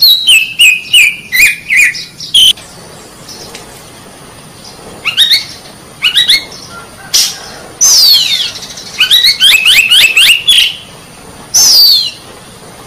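A bird sings loud, clear whistling phrases close by.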